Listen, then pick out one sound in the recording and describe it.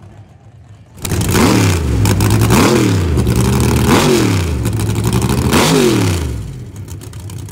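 A race car engine revs loudly in repeated sharp bursts.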